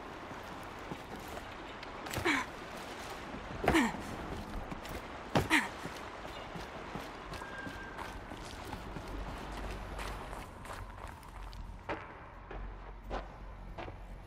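Footsteps thud and crunch at a run.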